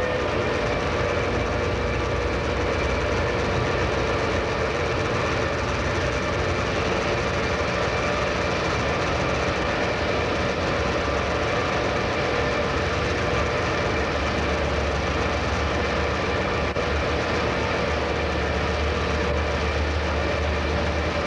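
Train wheels rumble over the rails.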